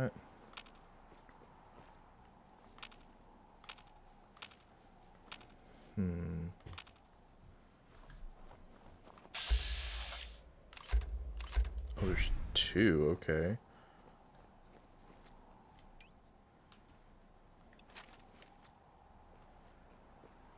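Footsteps crunch steadily over rough ground.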